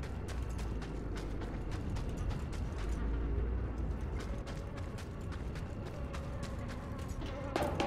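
Heavy footsteps thud quickly on a hard floor.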